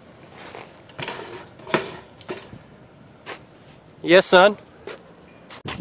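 A bicycle lands with sharp thuds on concrete.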